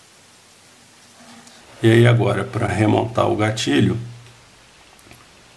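Small metal parts click and scrape softly as hands fit them together.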